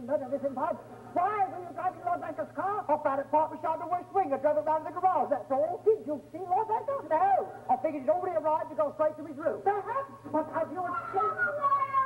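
A young man sings on a stage.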